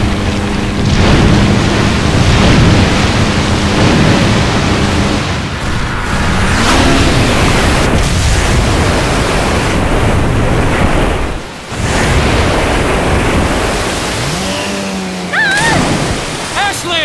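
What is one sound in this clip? Water rushes and splashes loudly.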